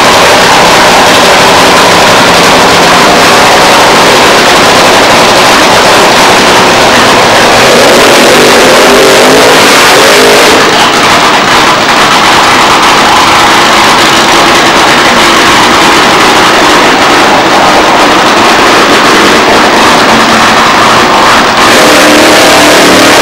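A nitro-fuelled top fuel dragster engine roars deafeningly.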